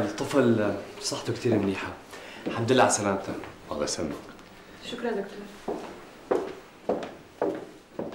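A second man answers calmly nearby.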